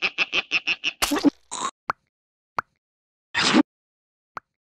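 A cartoon creature slurps through a straw.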